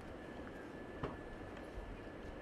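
A car door clunks open nearby.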